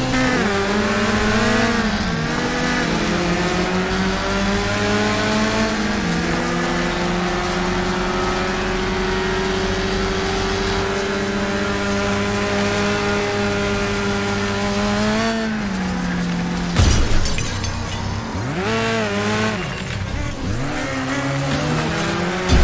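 A car engine roars steadily, rising and falling as it shifts gears.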